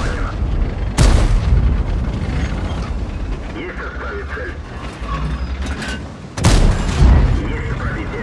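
A tank cannon fires with a loud, echoing boom.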